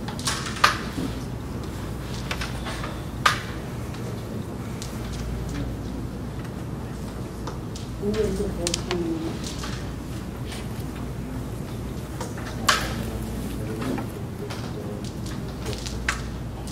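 Wooden carrom pieces clack sharply as a striker is flicked across a board.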